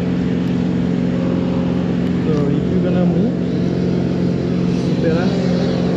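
A chainsaw engine idles steadily close by.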